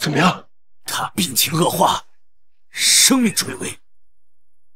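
A middle-aged man speaks urgently and close by.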